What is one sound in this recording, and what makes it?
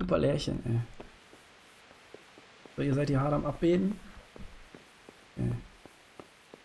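A man speaks casually into a microphone in short bursts.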